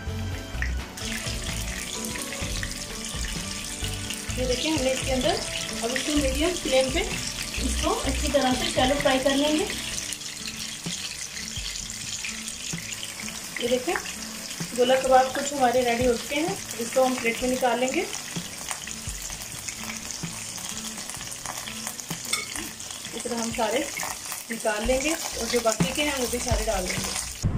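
Oil sizzles steadily as food fries in a pan.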